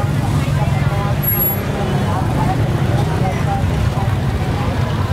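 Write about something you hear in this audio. A motorbike engine rumbles nearby.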